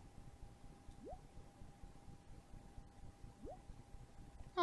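A short rising electronic chime sounds as each new message arrives.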